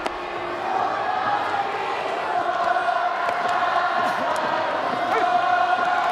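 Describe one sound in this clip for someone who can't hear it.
A large stadium crowd chants and cheers loudly in unison.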